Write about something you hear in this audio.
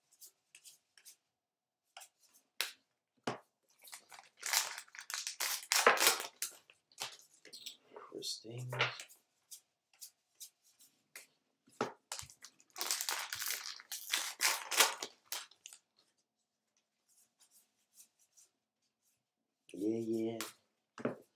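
Cards riffle and slap as they are shuffled.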